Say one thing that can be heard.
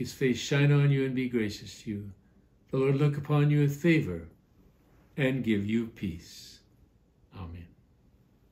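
An elderly man speaks calmly and earnestly close to a microphone.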